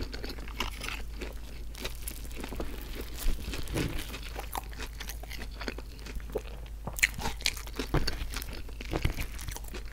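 A fork scrapes and taps against a plate.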